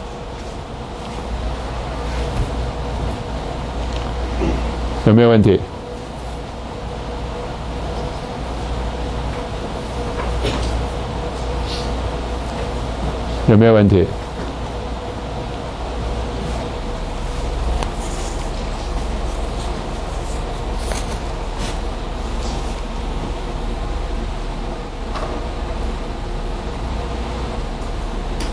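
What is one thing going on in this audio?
A middle-aged man speaks calmly through a lapel microphone.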